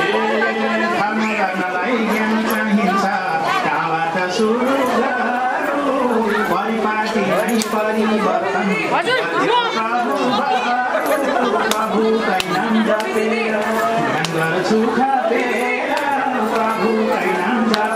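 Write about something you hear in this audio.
A crowd of men and women sings along loudly.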